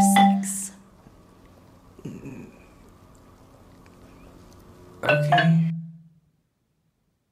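Mallets strike marimba bars in short bursts of ringing wooden notes.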